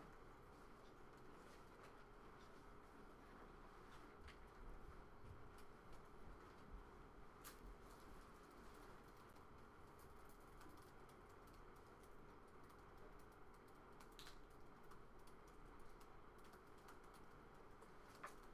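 Laptop keys click softly now and then.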